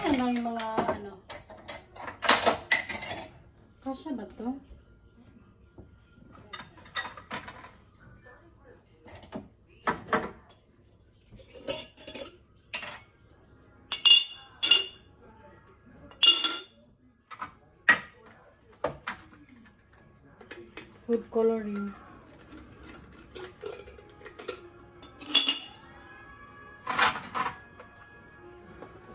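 Glass jars clink and knock against shelves.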